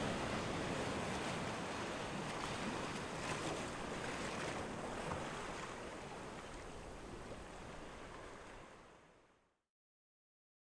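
Gentle waves wash and lap steadily, then fade away.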